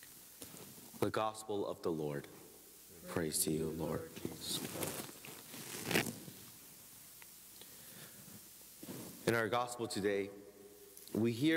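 A man speaks slowly and solemnly into a microphone, in a room with a slight echo.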